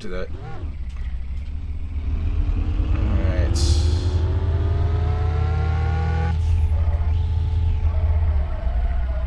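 A car engine revs up steadily, rising in pitch as the car speeds away.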